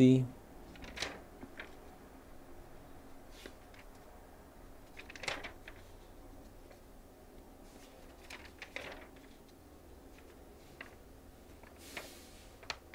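Magazine pages rustle and flap as they are turned.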